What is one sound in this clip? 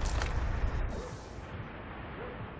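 A short electronic whoosh sounds as a menu opens.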